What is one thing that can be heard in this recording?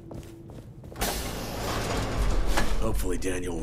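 A sliding door whooshes open.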